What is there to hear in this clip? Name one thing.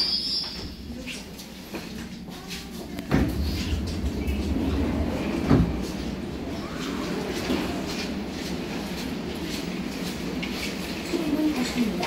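A subway train rumbles and rattles along the tracks.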